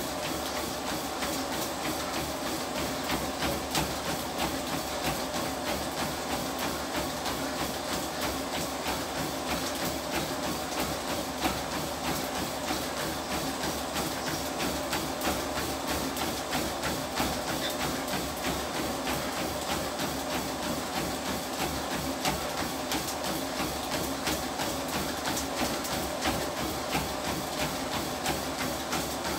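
Feet pound quickly and steadily on a treadmill belt.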